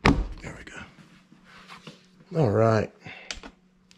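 A plastic casing clicks and snaps as it is pressed onto a wall plate.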